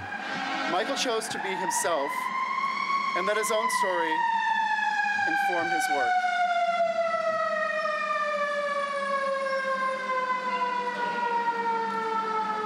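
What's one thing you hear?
A man sings a long held note that slowly falls.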